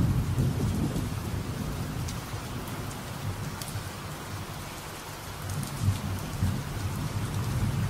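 Steady rain falls.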